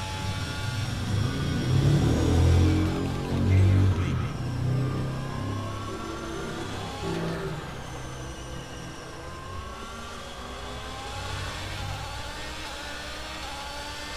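A racing car engine roars and whines, its pitch rising and falling as gears shift.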